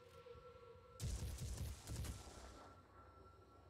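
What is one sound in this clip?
A gun fires a loud, crackling energy blast.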